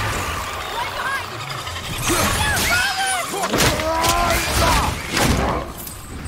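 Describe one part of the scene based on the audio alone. A creature screeches and shrieks.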